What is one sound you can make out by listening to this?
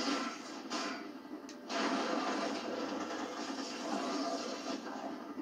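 Video game fighting sounds crash and rumble loudly.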